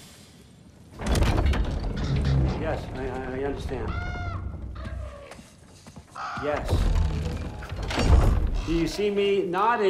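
A heavy wooden door creaks and rumbles open.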